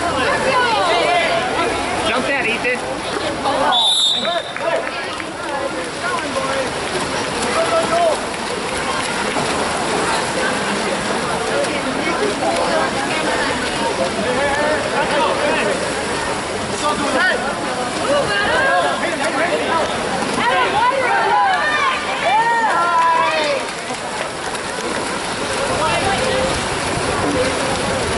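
Spectators shout and cheer loudly outdoors.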